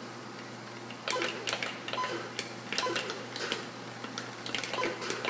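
Beeping sound effects from an Atari 2600 video game play through a television speaker.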